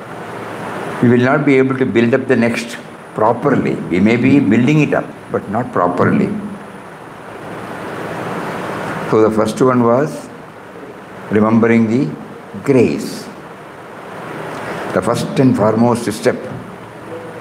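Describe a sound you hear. An elderly man speaks slowly and calmly into a close microphone, with pauses.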